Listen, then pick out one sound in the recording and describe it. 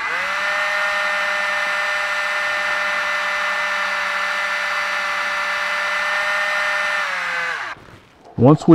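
A lathe motor hums steadily, then winds down.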